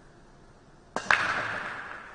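A cue strikes a pool ball with a sharp crack.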